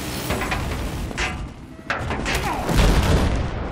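Helicopter rotors thrum steadily.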